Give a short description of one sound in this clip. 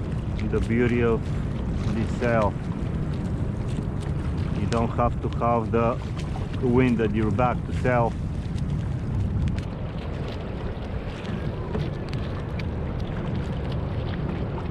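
Water splashes against a small boat's hull.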